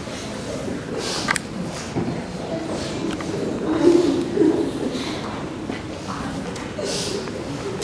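A man sobs and sniffles nearby.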